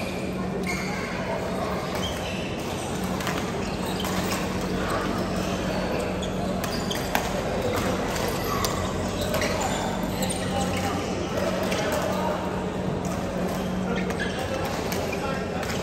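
Badminton rackets smack a shuttlecock in a large echoing hall.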